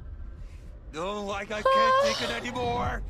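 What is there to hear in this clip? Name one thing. A young woman cries out in mock distress close to a microphone.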